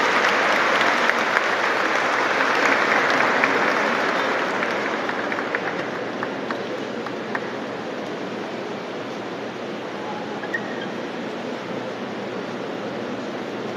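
A large crowd murmurs and chatters in a large echoing hall, growing quieter.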